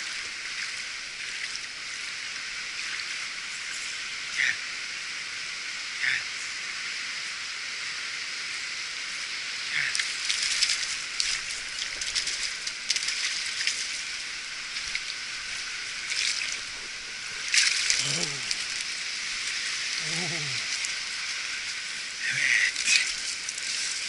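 A stream flows and burbles steadily close by.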